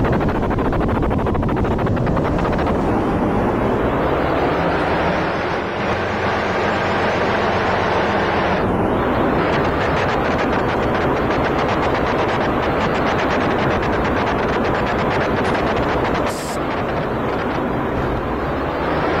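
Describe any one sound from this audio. A diesel locomotive engine rumbles and chugs steadily close by.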